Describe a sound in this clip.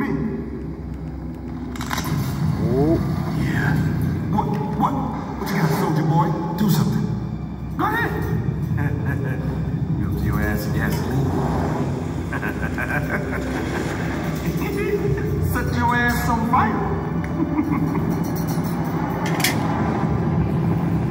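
A film soundtrack plays through a television speaker.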